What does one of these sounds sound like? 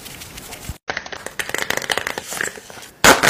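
Plastic packets crinkle and rustle close by.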